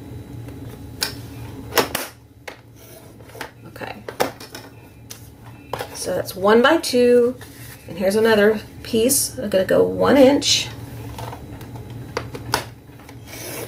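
A paper trimmer blade slides and cuts through paper.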